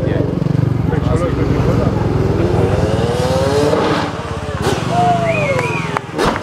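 Motorcycle engines rise and fall in pitch as the bikes race past.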